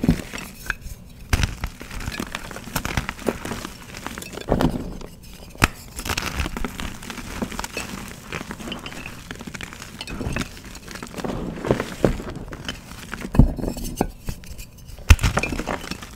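Hands rustle and pat through soft powder.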